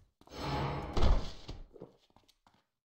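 A fiery spell bursts with a whoosh.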